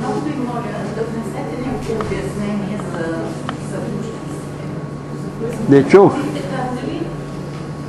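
An elderly woman speaks from farther off in the room.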